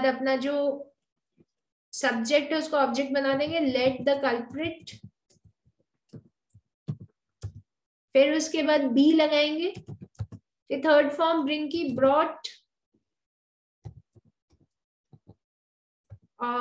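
A woman speaks calmly and clearly into a close microphone, pausing between phrases.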